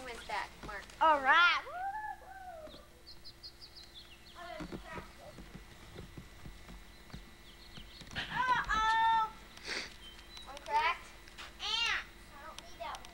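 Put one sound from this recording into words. A young child calls out in a high, excited voice nearby.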